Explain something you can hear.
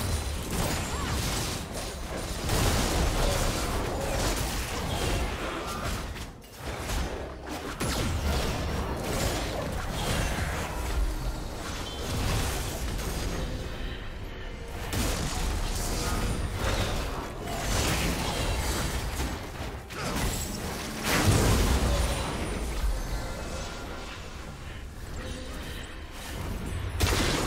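Spell effects whoosh and crackle as game characters fight.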